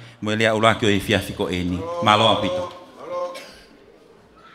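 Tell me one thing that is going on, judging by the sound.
A woman speaks loudly into a microphone over loudspeakers.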